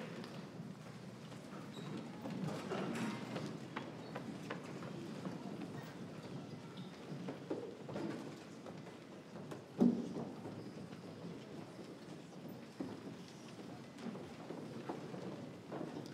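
Footsteps cross a wooden stage.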